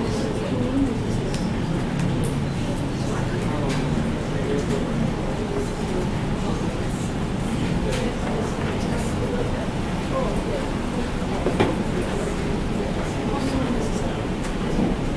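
A man talks calmly through a microphone in a room with a slight echo.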